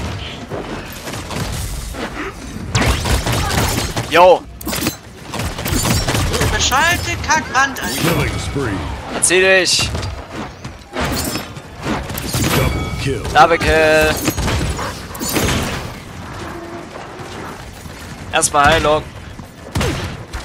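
Game weapons fire in quick bursts with whooshing and crackling blasts.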